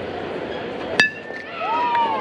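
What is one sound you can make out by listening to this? A metal bat strikes a baseball with a ringing ping.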